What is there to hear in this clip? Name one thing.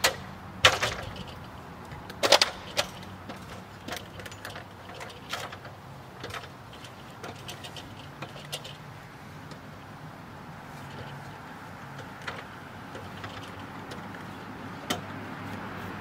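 An aluminium ladder clanks and knocks as a man climbs its rungs.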